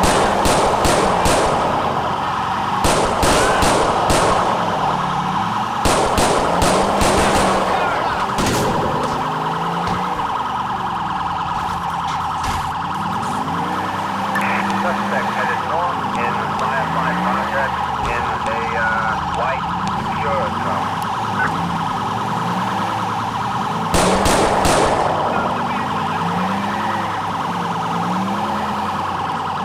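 A police siren wails steadily, rising and falling.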